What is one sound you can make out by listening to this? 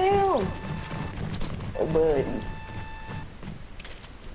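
A video game plays a bright, ringing chime as a player is knocked out.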